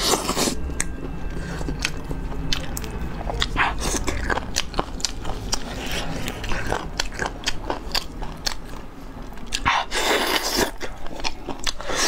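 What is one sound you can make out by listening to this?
Sticky sauce squelches as fingers tear meat apart.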